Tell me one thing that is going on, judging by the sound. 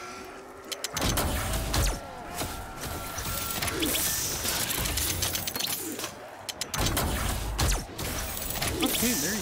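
Heavy guns fire in bursts of loud blasts.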